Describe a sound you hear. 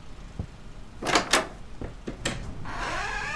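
A door opens with a loud clatter.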